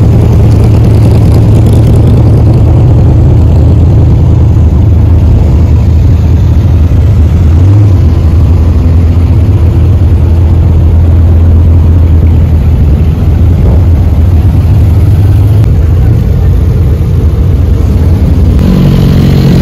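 Sports car engines idle with a deep, steady rumble close by.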